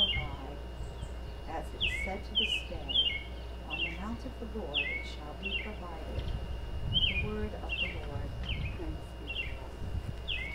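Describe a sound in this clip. An older woman reads out calmly into a microphone.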